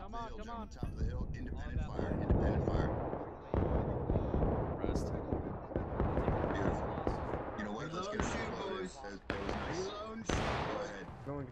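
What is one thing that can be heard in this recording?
Muskets fire in loud, sharp bangs nearby.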